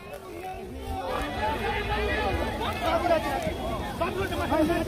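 A crowd of people shouts at a distance outdoors.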